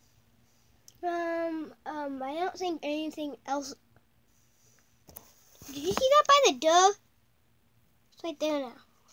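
A young boy speaks close by, with animation.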